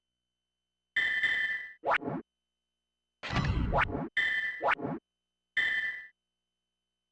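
Electronic whooshes and beeps sound as a game menu turns.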